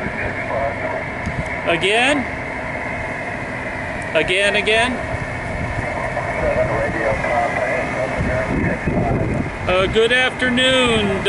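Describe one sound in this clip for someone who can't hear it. A man speaks calmly and close up through a headset microphone.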